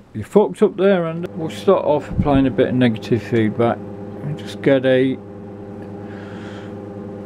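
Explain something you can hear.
A steady electronic tone hums from audio equipment.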